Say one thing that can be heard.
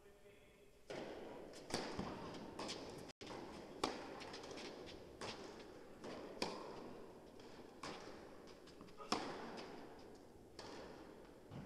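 A tennis ball is struck sharply by rackets in a rally, echoing in a large hall.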